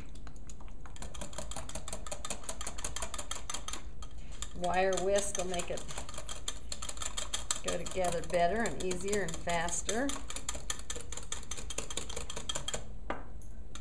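A whisk clicks rapidly against the sides of a cup.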